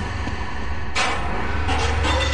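Glass shatters and tinkles.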